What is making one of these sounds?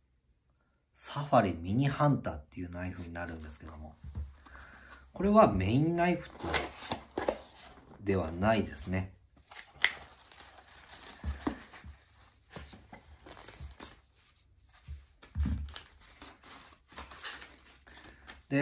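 A cardboard box scrapes and taps as hands open and handle it.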